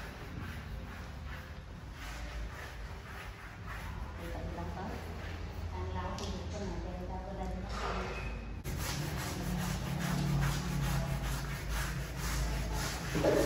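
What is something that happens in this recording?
A brush scrubs against a wall with quick rasping strokes.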